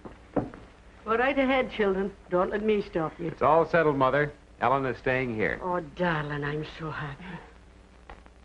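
An elderly woman speaks with animation.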